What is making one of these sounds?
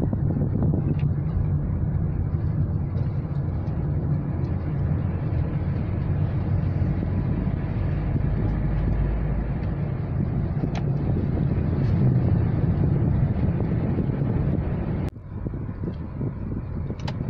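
Tyres roll with a low steady rumble on a paved road.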